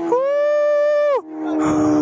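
A young man whoops loudly through a helmet.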